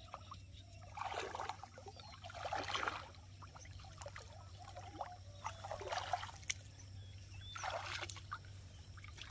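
Water splashes as a man wades through shallow water.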